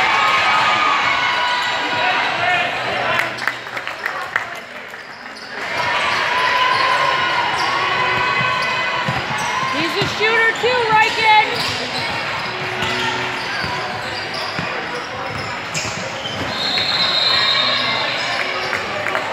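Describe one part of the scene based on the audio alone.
Young players shout and call out across an echoing gym.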